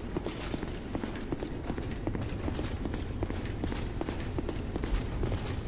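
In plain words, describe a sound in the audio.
Footsteps run quickly across a hard stone floor.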